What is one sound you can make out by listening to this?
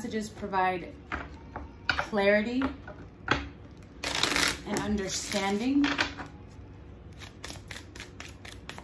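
Playing cards are shuffled by hand, tapping and riffling softly.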